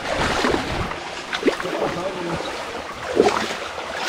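A person wades through shallow water with splashing steps.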